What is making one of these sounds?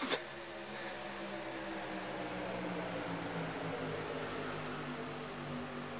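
Racing truck engines drone steadily in a close pack.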